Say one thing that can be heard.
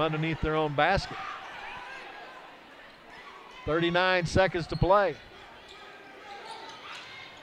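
A crowd murmurs in the stands.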